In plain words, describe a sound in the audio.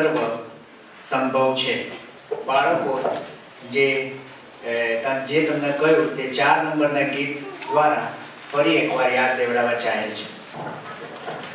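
A man speaks over a loudspeaker in an echoing hall.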